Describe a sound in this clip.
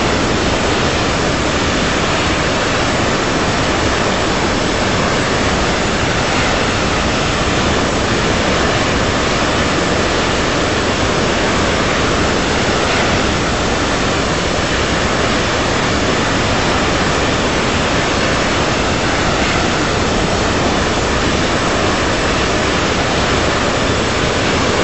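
Jet engines roar steadily as an airliner flies.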